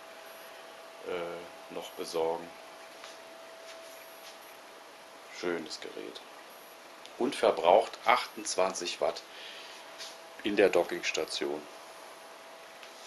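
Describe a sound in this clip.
A laptop computer hums steadily.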